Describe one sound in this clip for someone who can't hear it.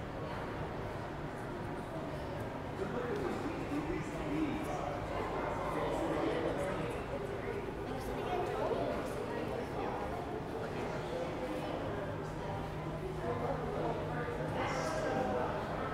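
A crowd of people chatters indistinctly in a large echoing hall.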